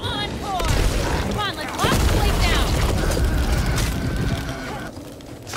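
Gunfire bursts loudly at close range.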